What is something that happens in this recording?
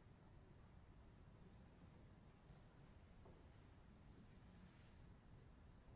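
A grand piano plays in a large echoing hall.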